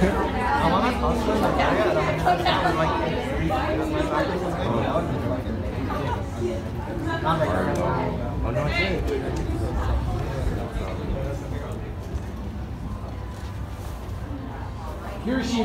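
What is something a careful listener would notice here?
A young woman speaks with animation to an audience in a large room.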